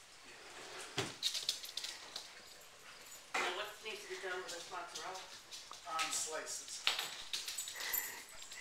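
A small dog's claws patter and click on a wooden floor.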